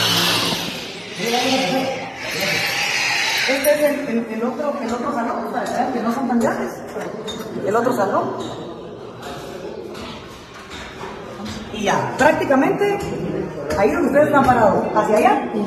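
A woman speaks with animation, close to a clip-on microphone.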